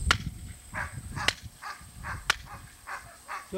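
Two wooden blocks clap together sharply.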